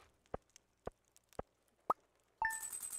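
Short electronic pops sound one after another.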